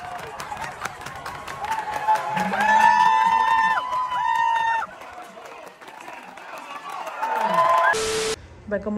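A crowd claps in a stadium.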